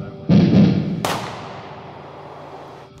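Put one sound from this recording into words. A pistol shot cracks loudly and echoes away outdoors.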